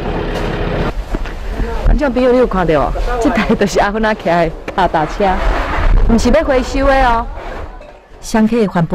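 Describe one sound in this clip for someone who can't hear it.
A middle-aged woman speaks cheerfully and close by, through a clip-on microphone.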